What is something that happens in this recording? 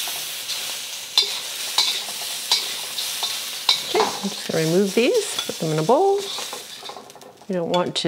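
Shrimp sizzle in hot oil in a wok.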